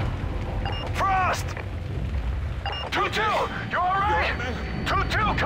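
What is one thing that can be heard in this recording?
A man speaks urgently through a radio.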